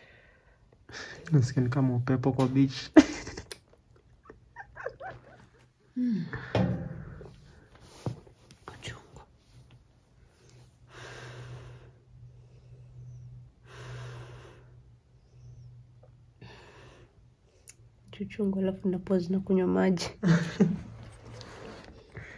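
A young woman talks and laughs softly close by.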